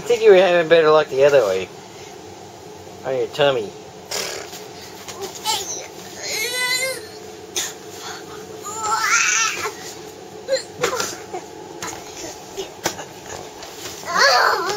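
A young child squeals and giggles up close.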